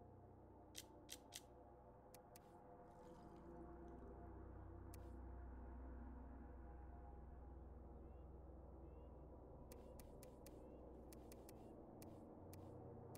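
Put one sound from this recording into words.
Short menu clicks tick as items are selected.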